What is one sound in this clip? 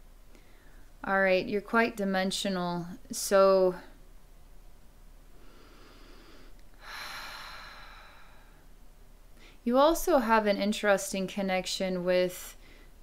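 A young woman speaks calmly and softly close to a microphone.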